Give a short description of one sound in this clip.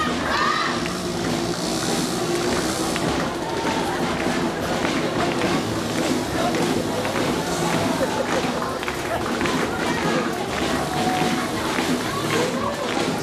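A brass band plays a lively march outdoors.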